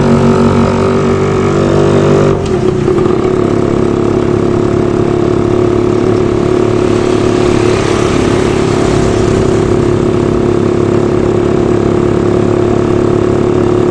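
A vehicle engine hums steadily up close while driving.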